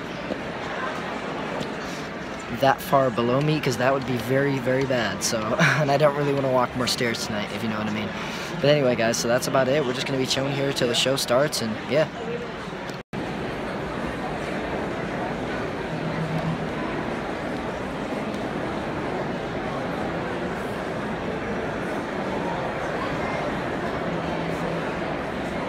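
A large audience murmurs and chatters in a big echoing hall.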